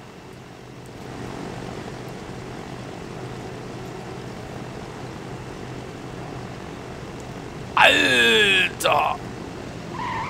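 Propeller engines of an airplane drone steadily as it flies.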